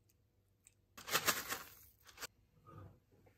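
Dry oats pour and rattle into a bowl.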